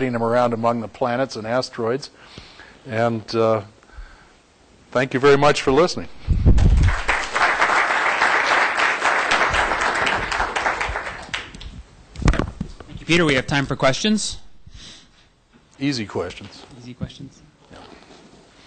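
An elderly man speaks calmly through a microphone in a large room.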